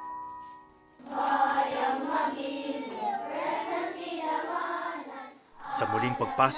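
A group of children sings together outdoors.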